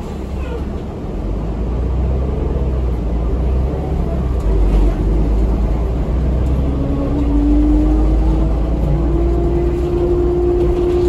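A bus engine revs up and whines as the bus pulls away.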